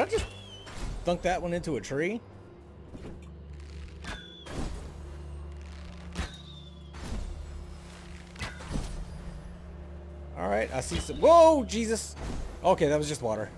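Magic blasts whoosh and crackle in short bursts.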